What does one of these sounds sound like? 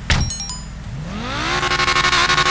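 A sports car engine revs up, rising to a loud roar.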